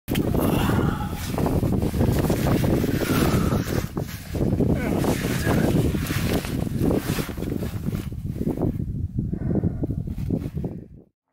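Clothing and gear scrape and rustle against rock as someone crawls through a tight space.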